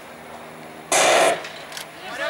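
A starting pistol fires once with a sharp crack.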